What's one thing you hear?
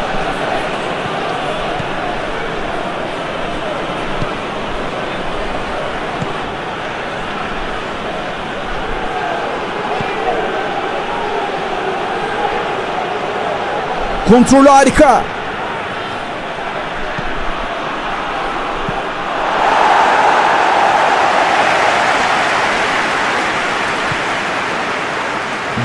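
A large stadium crowd murmurs and chants steadily.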